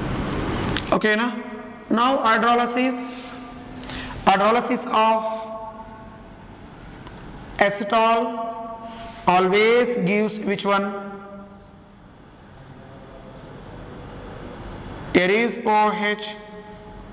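A man speaks calmly and steadily, close by, as if explaining.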